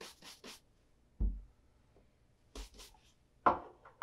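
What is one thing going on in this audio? A shoe knocks down onto a wooden table.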